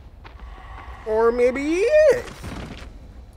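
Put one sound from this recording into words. A young man shouts in alarm into a close microphone.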